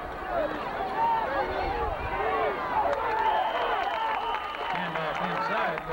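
Football players collide with thuds in a tackle.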